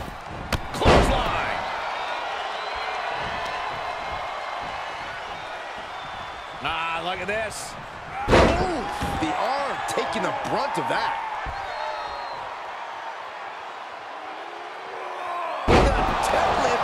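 Heavy thuds hit a mat.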